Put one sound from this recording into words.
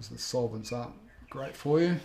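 Fingers rub softly across paper.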